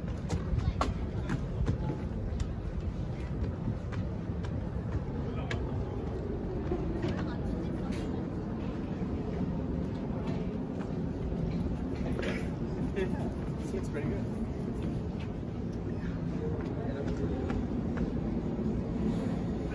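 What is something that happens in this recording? Footsteps scuff on stairs and decking outdoors.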